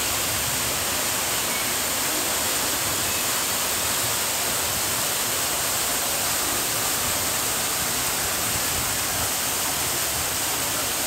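Water splashes and trickles steadily nearby.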